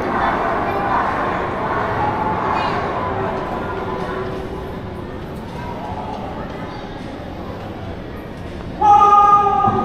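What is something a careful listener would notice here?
People chat quietly in the distance in a large, echoing hall.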